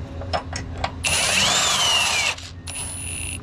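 A pneumatic impact wrench whirs and hammers loudly.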